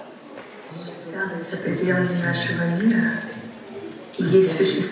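A young woman sings through loudspeakers in a large hall.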